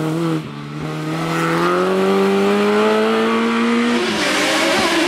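A racing car engine revs loudly and rises in pitch as the car speeds up the road.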